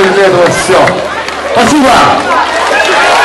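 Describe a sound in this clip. A crowd cheers and shouts near by.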